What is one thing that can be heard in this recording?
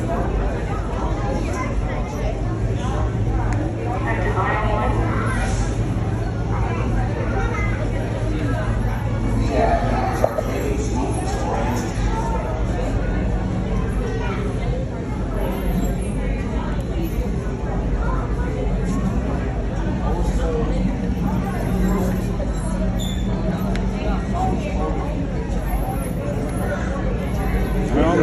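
A crowd of people chatters all around in a large echoing hall.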